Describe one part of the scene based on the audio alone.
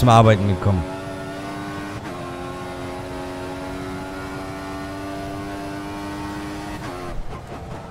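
A racing car engine whines and climbs in pitch as the car speeds up.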